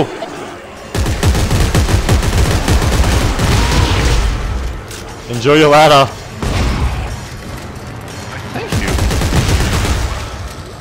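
A weapon fires in loud, rapid bursts.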